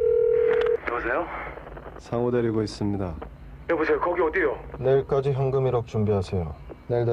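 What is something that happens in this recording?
A man speaks tensely over a phone.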